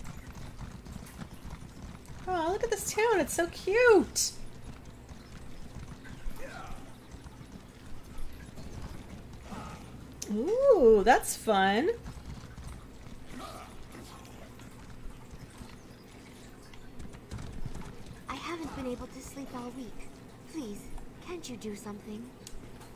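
Hooves clop steadily as a horse trots along a path.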